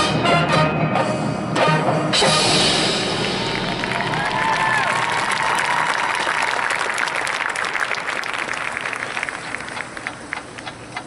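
A marching band plays loudly, echoing through a large hall.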